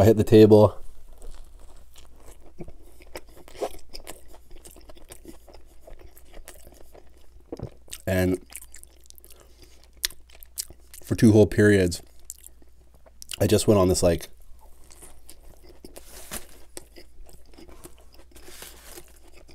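A man chews food wetly and crunches lettuce close to a microphone.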